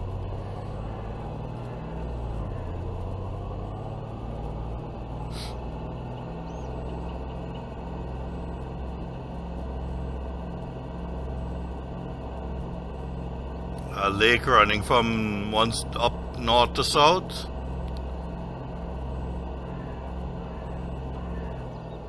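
A pickup truck engine hums steadily at speed.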